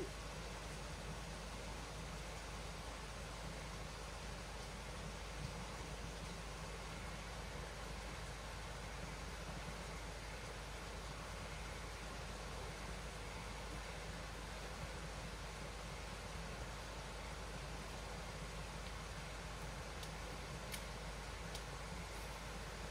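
A stream flows gently nearby.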